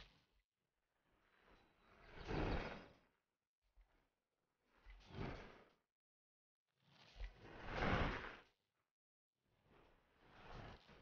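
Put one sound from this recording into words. Bicycle tyres rumble over rough grass, swelling and fading in waves.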